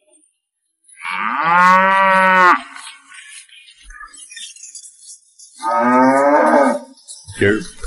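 A cow moos.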